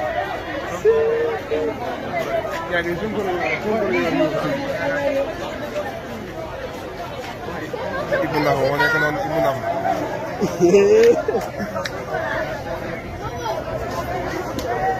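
A crowd of men and women chatter and call out loudly outdoors.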